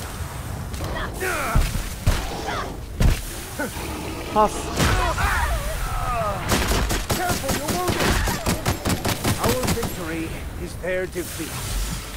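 A large beast roars and growls.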